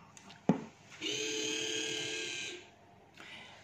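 Small servo motors whir as a robot joint turns.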